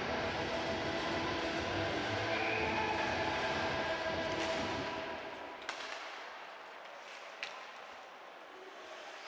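Ice skates scrape and glide across the ice.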